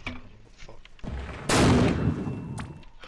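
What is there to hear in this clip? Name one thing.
A shell explodes with a heavy blast.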